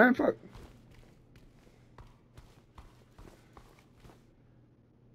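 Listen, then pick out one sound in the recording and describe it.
Footsteps tread softly.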